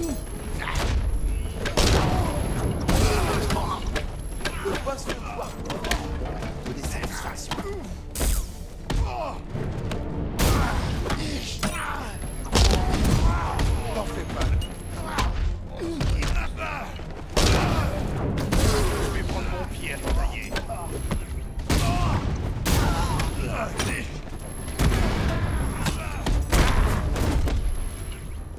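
Punches and kicks thud and smack repeatedly in a fast brawl.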